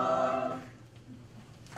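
A choir sings a held chord in a hall and stops.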